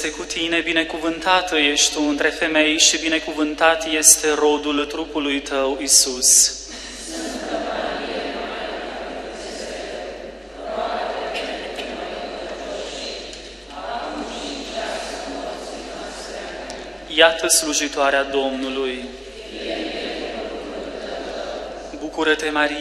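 A man sings through a microphone in a large echoing hall.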